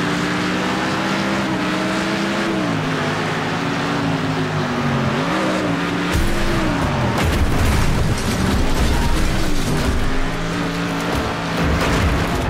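A racing car engine revs hard, dropping in pitch at each gear change.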